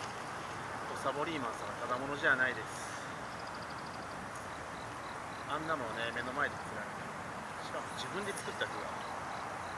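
A man talks quietly nearby outdoors.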